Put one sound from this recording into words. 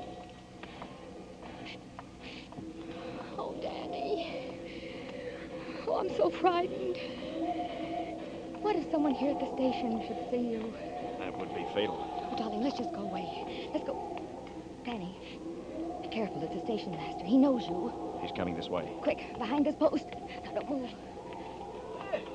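A woman speaks with great emotion into a microphone, heard as an old radio recording.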